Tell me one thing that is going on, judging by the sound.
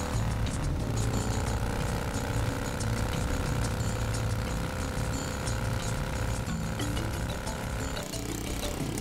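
A motorbike engine putters close by.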